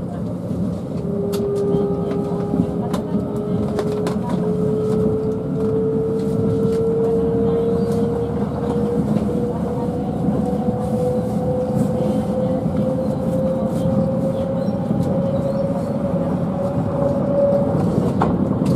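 A train's motor whines, slowly rising in pitch.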